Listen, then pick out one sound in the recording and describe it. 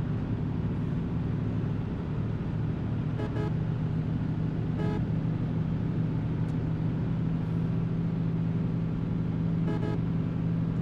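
A bus engine drones with a steady low hum.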